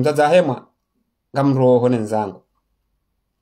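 A man speaks calmly and close up, in short phrases.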